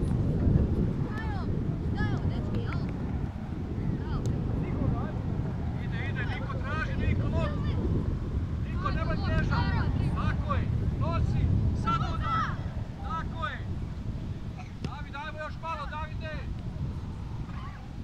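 Young women shout to each other across an open field, some way off.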